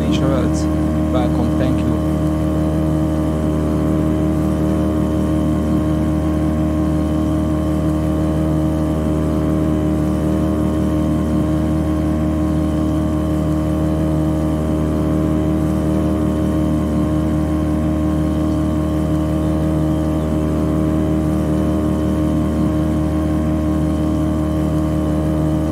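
Water splashes and rushes against a speeding boat's hull.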